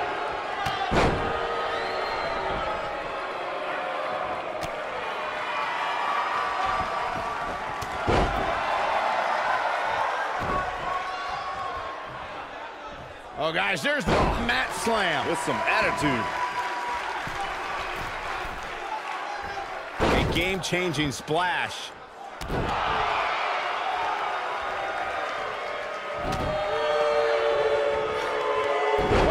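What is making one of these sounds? Bodies slam down onto a wrestling ring mat with heavy thuds.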